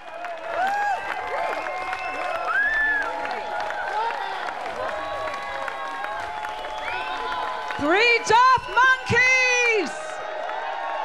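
People in a crowd whistle loudly.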